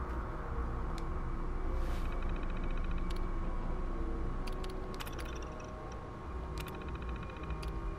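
A computer terminal chirps and ticks as text prints out.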